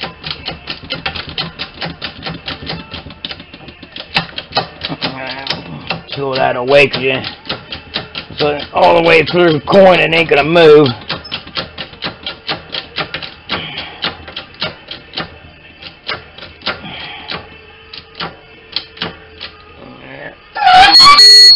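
A small machine taps rapidly in a steady rhythm.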